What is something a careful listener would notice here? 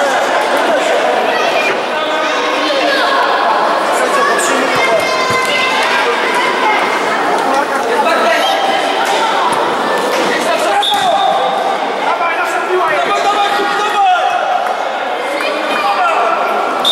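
Children shout and cheer throughout a large echoing hall.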